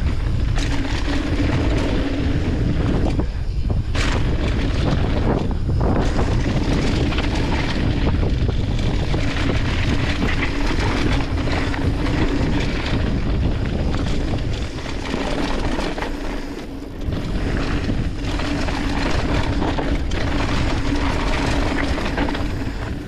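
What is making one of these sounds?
Mountain bike tyres roll fast over a dirt trail.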